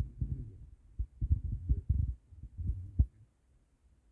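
A plastic tub knocks and scrapes in a hand.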